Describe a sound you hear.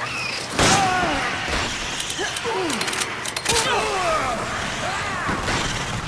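A man groans and shouts hoarsely.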